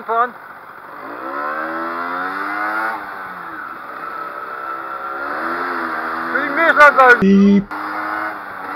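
A motorcycle engine revs up repeatedly as the bike pulls away and gathers speed.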